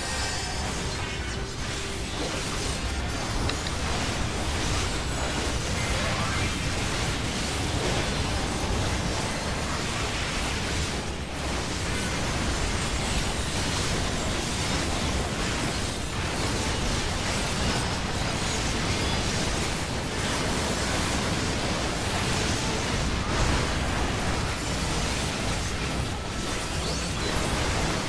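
Magic spell effects crash and chime again and again.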